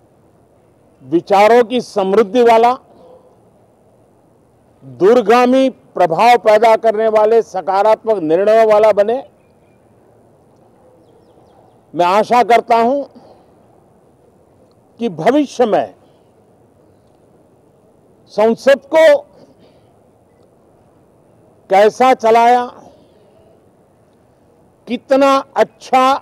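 An elderly man speaks calmly and deliberately into microphones, with long pauses between phrases.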